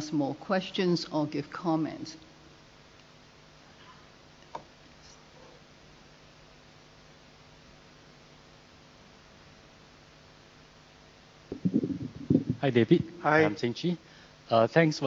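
A middle-aged woman speaks calmly through a microphone in a large room, with long pauses.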